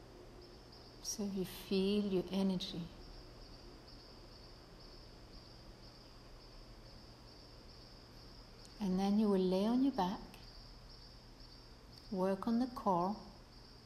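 A woman speaks calmly nearby, in short phrases.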